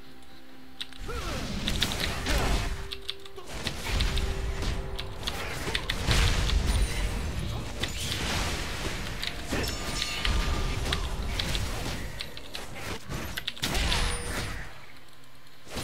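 Game combat sound effects clash and burst in quick succession.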